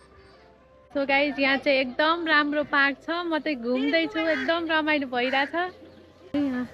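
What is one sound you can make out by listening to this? A young woman talks animatedly and close to a microphone.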